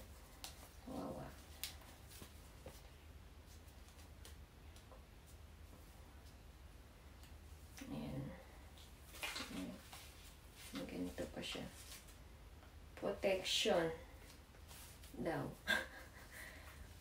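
A young woman talks calmly close by, in short bursts.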